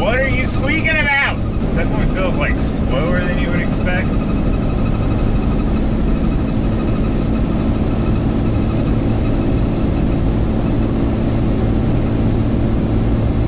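A truck engine hums steadily inside the cab.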